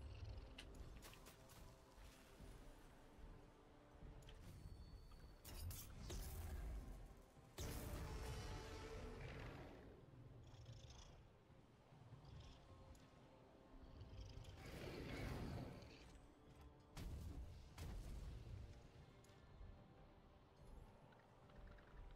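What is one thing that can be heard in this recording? Large wings beat and whoosh through the air.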